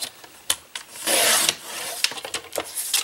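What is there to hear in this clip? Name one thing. A paper trimmer blade slides down and slices through card.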